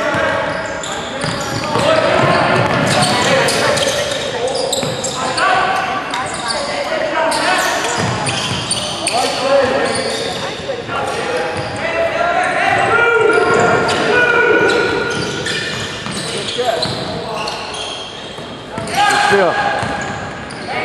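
A basketball bounces on a hard wooden floor in a large echoing gym.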